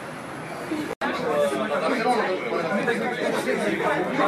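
Young men and women chatter loudly in a crowded room.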